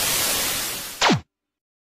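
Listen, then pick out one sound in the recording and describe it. An old television switches off with a falling whine.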